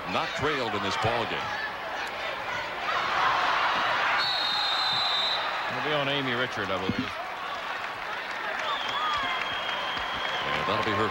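A crowd cheers and murmurs in a large echoing arena.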